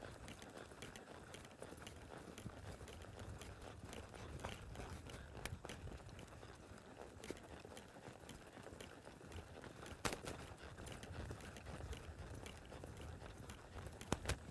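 A horse's hooves thud on soft sand at a steady lope.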